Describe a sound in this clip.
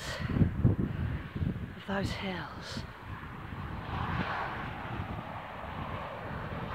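Wind gusts and rumbles across open ground outdoors.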